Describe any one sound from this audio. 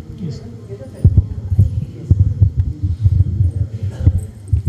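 Knocks and bumps thud against a handheld microphone.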